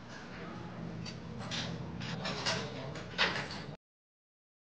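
A metal gate rattles and clanks.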